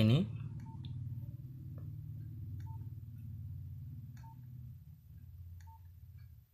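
Keys on a mobile phone click as a thumb presses them.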